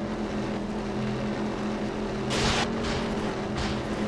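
Tyres skid and scrape on dirt.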